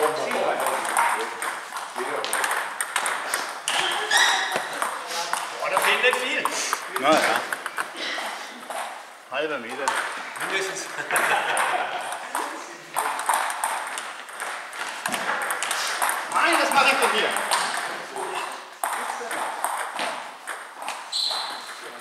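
Table tennis balls click on paddles and tables in a large echoing hall.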